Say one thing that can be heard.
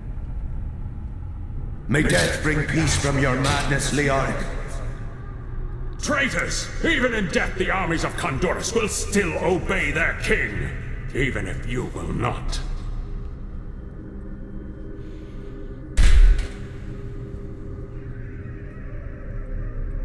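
Swords clash and magic crackles in a fierce fight.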